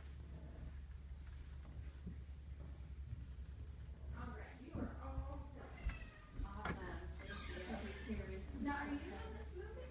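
A hand softly strokes a cat's fur.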